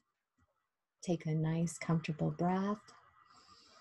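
A middle-aged woman speaks slowly and calmly, heard through an online call.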